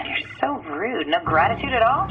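A young woman speaks calmly through a radio link.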